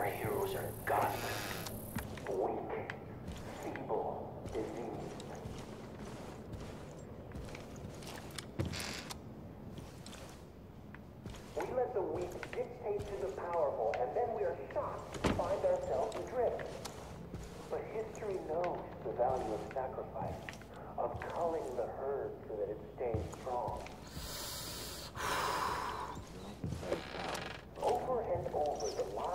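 A bearded man talks with animation into a headset microphone.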